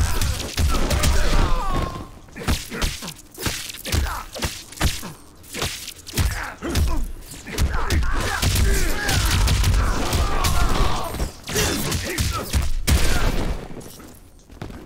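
Punches and kicks land with heavy thuds and cracks.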